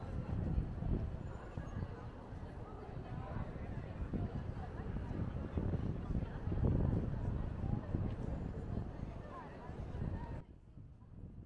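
A crowd of people murmurs and walks about outdoors.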